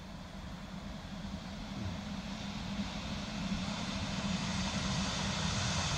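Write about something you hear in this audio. An electric multiple-unit train approaches on the track.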